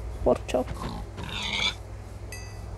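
A pig squeals when struck.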